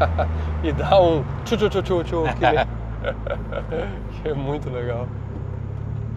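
Two men laugh close by.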